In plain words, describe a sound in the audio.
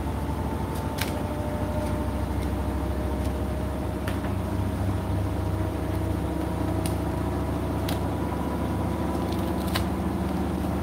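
Small hard items in the laundry tick against a washing machine drum.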